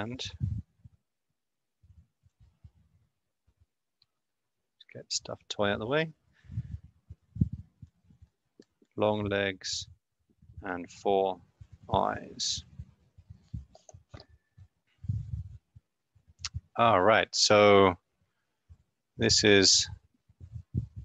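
A young man speaks calmly and haltingly into a close microphone.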